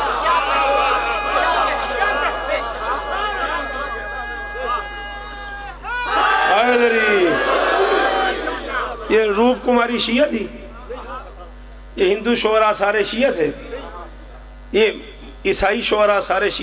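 A man speaks passionately into a microphone, heard through loudspeakers.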